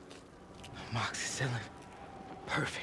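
A young man speaks quietly and strained, close by.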